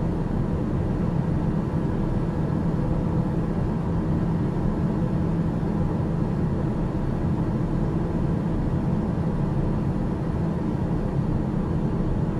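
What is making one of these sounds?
A small aircraft's engine drones steadily in flight, heard from inside the cockpit.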